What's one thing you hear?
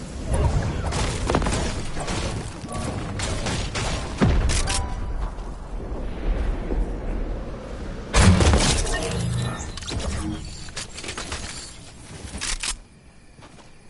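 Gunshots and building clatter sound from a video game.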